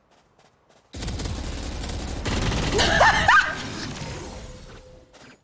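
A young woman laughs into a microphone.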